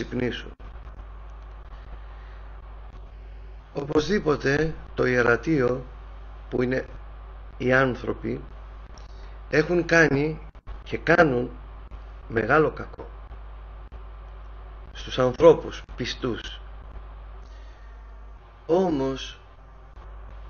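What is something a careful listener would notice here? A middle-aged man speaks calmly and slowly through a microphone, with long pauses.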